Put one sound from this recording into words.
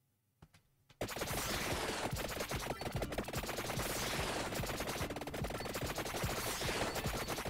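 Rapid game sound effects of weapons hitting enemies clatter continuously.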